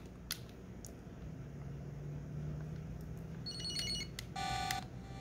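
Small plastic buttons click under fingers.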